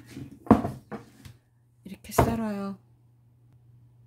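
A knife is set down on a cutting board with a clatter.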